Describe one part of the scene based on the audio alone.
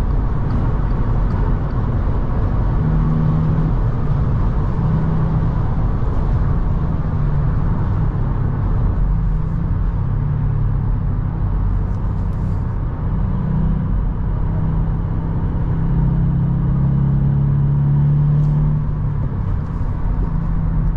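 A car engine hums steadily from inside the cabin, rising and falling in pitch.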